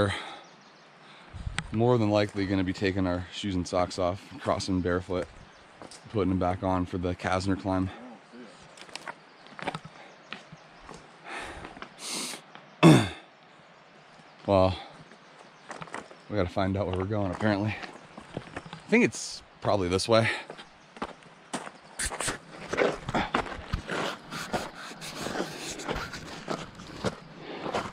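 Footsteps crunch on loose rocks and gravel.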